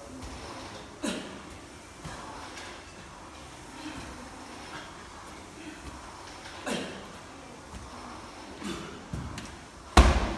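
A medicine ball thuds against a wall.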